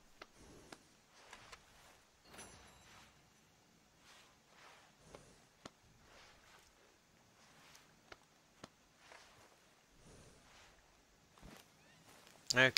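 A brush swishes in repeated strokes over a horse's coat.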